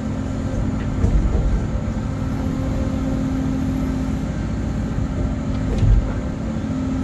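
An excavator bucket knocks dully against the ground.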